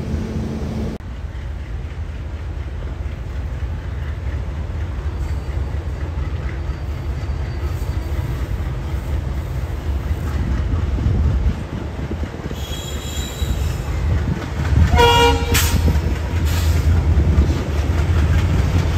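A diesel locomotive engine rumbles deeply as it approaches.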